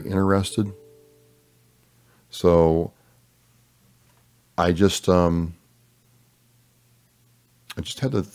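A man speaks in short, animated bursts close to a microphone.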